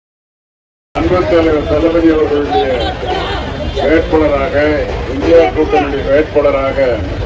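An older man speaks loudly and with animation into a microphone, heard over a loudspeaker.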